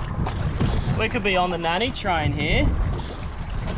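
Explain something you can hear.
A fishing reel's drag whines in short bursts.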